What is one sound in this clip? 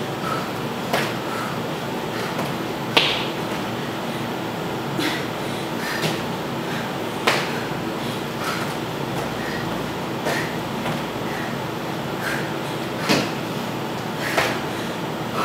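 A woman's shoes thump on a hard floor as she jumps and lands.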